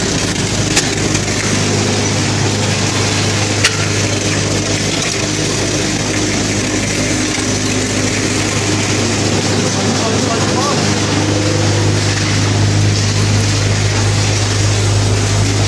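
A machine hums loudly and steadily throughout.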